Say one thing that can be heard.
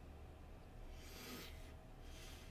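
A man laughs softly behind his hand.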